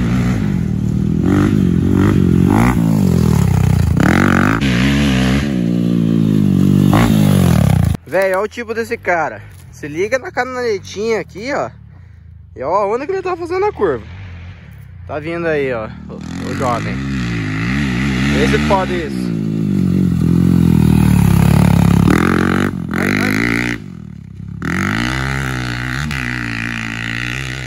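A dirt bike engine revs loudly and whines up and down in pitch.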